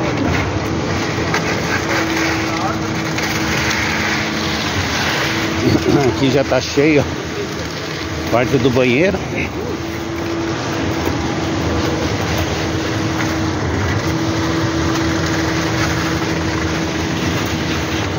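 Wet concrete gushes and splatters from a pump hose.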